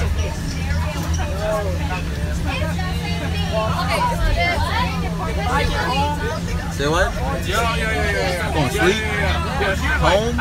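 Young men talk and laugh with animation nearby.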